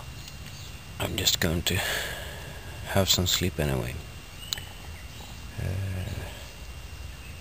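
A man speaks quietly close by, in short bursts.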